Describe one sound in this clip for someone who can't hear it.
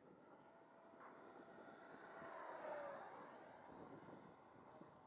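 A small jet engine roars past overhead with a falling whine.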